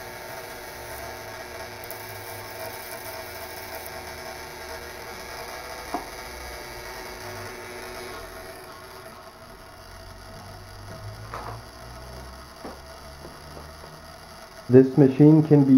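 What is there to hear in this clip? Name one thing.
A violet ray wand buzzes with a high-voltage hum.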